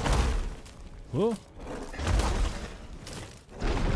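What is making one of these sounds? Stone blocks crash and rumble as they fall.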